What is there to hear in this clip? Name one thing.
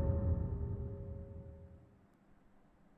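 An electronic alarm tone sounds and fades out.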